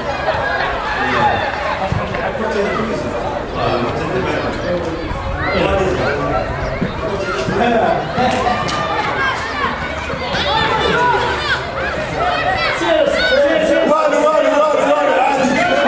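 Many men and boys talk and shout nearby, outdoors.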